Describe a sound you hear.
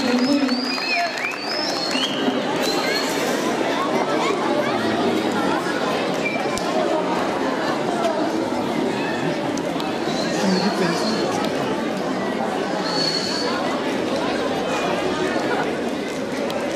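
A large crowd of children and adults chatters and calls out outdoors.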